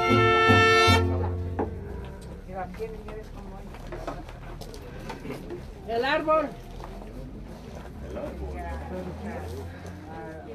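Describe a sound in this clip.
A crowd of men and women murmur and talk quietly nearby.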